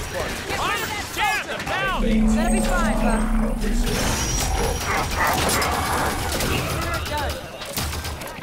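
Energy weapons fire in rapid, whining bursts.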